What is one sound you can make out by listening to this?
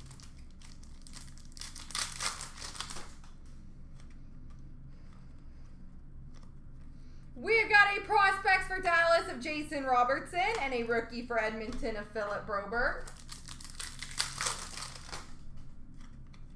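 Foil card packs rustle and crinkle.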